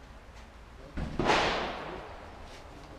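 A gunshot cracks nearby and echoes outdoors.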